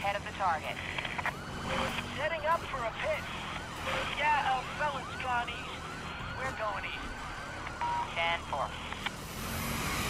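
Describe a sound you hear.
Police sirens wail close by.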